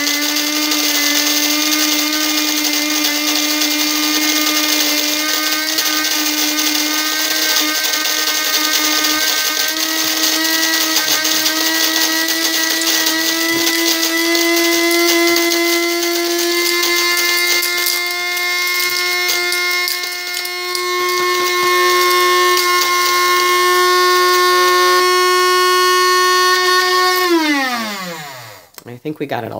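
A coffee grinder whirs steadily with a high motor whine, then winds down.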